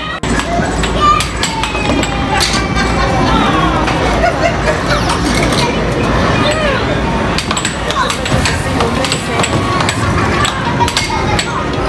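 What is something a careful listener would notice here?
An air hockey puck clacks against the table rails.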